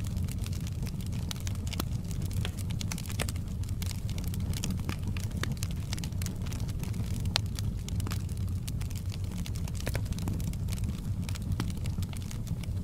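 Flames roar with a low, steady rumble.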